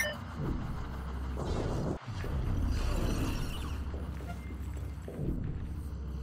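Footsteps tread softly on a hard floor.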